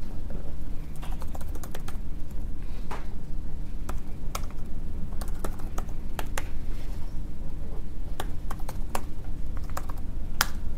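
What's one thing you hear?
Laptop keys click in short, uneven bursts.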